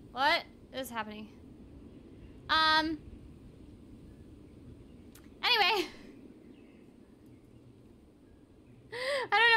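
A young woman speaks in short bursts into a close microphone, with animation.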